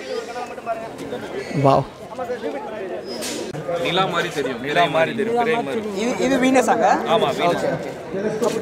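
A small crowd murmurs and chatters outdoors.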